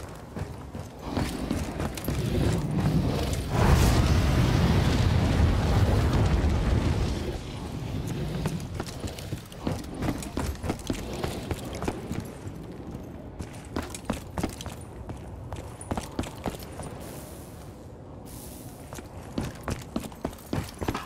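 Footsteps thud steadily on hard floors and wooden stairs.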